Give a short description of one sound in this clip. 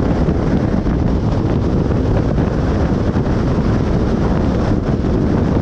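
Wind buffets loudly against a moving car.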